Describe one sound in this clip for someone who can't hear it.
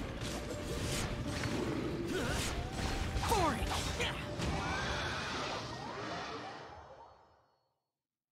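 Loud magical blasts and impacts crash and boom in quick succession.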